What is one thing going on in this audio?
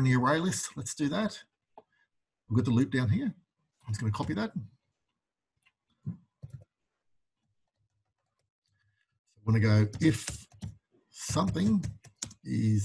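A man talks calmly and clearly into a close microphone, in short bursts with pauses.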